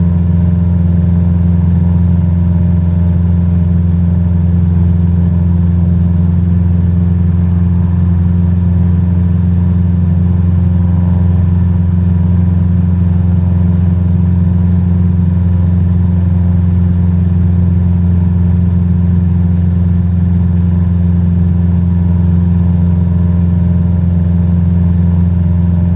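A small propeller plane's engine drones steadily and loudly.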